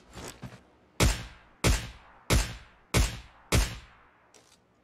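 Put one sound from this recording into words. A sniper rifle fires several loud shots in a row.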